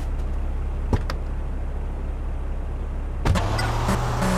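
A car door clicks open and thuds shut.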